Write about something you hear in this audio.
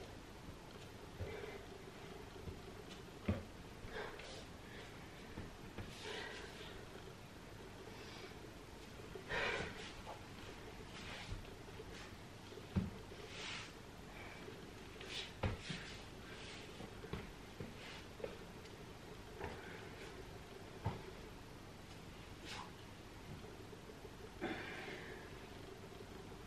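A young woman breathes out hard close by.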